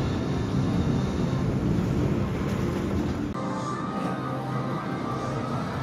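A roller coaster train rattles and roars along its track.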